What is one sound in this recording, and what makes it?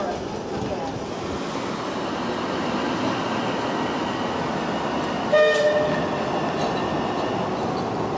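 A tram rumbles closer along a street.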